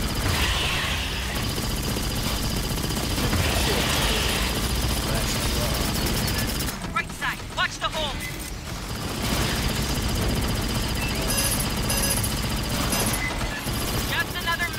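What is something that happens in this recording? Rapid gunfire rattles continuously.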